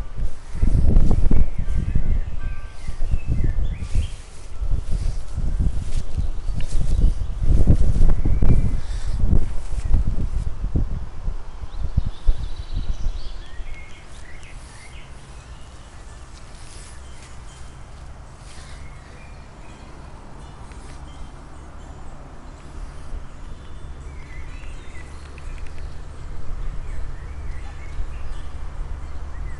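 Wind rumbles and buffets outdoors, gusting hard at first and then easing to a low steady rush.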